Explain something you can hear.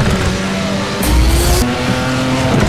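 A car crashes over wooden planks with a loud thud.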